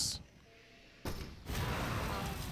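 A shot bursts into a roaring blaze of fire.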